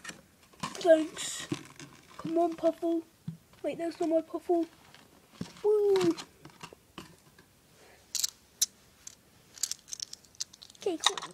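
Soft toys rustle and brush together as they are handled close by.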